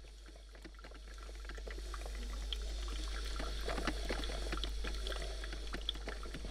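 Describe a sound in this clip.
A coffee maker gurgles and bubbles as it brews.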